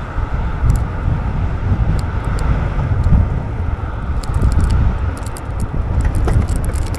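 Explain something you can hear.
Bicycle tyres roll steadily over pavement.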